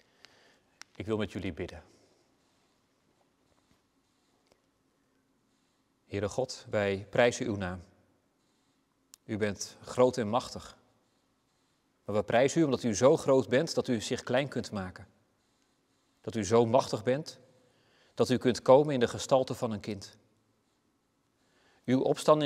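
A man reads aloud calmly, close to a microphone, with short pauses.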